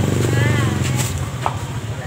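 A middle-aged woman talks nearby.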